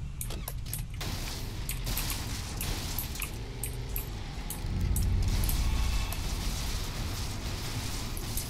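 Tyres crunch over snowy ground.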